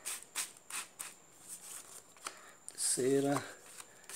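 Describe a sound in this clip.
Playing cards flick and flap as they are shuffled by hand.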